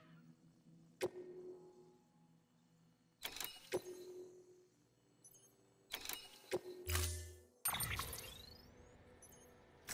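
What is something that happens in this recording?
Short electronic clicks and chimes sound as menu items are selected.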